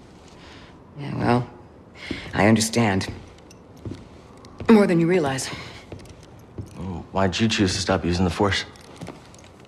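A woman speaks calmly and quietly.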